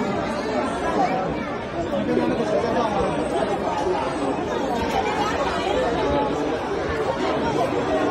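A crowd of men and women chatters and calls out all around in a large echoing hall.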